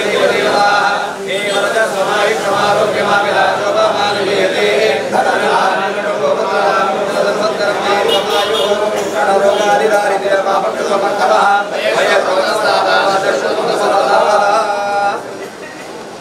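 Several men chant together in a steady rhythm.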